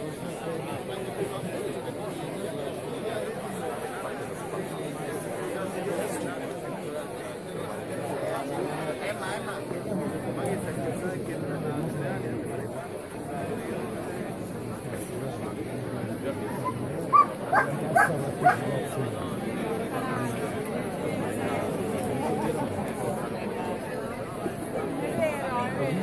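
A large crowd of men and women chatters and calls out nearby, outdoors.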